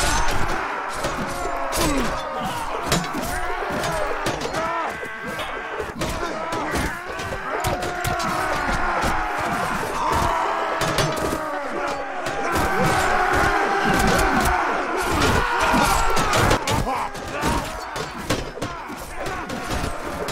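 Metal weapons clash and thud against shields.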